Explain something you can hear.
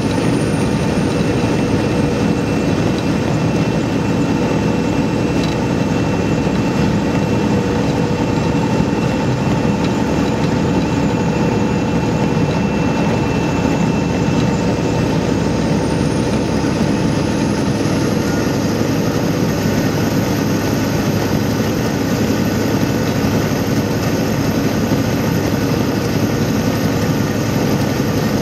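Wind rushes against the vehicle.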